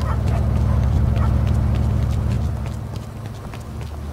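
Footsteps run on a street.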